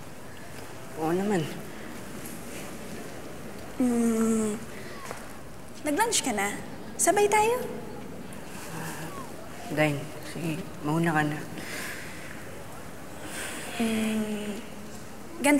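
A teenage boy speaks calmly, close by.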